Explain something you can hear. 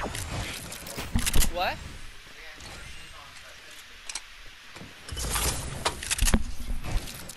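Wooden building pieces clatter and snap into place in quick bursts.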